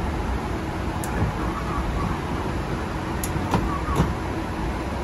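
Switches click sharply on an overhead panel.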